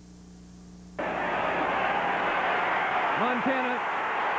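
A stadium crowd roars.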